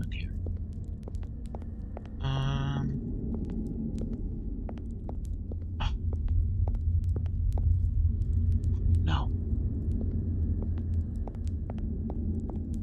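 A small flame flickers and crackles softly.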